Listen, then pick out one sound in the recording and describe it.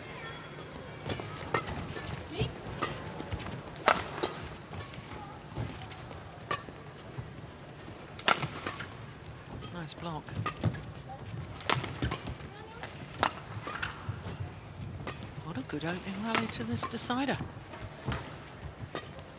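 Rackets strike a shuttlecock back and forth with sharp pops in a large echoing hall.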